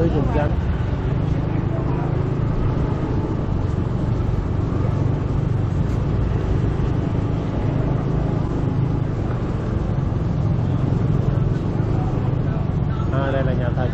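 A motorbike engine hums steadily at low speed.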